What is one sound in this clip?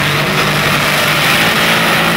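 Drag tyres spin and squeal on the track.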